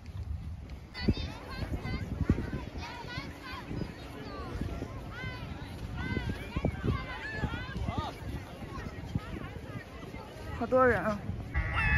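A crowd of people chatters at a distance.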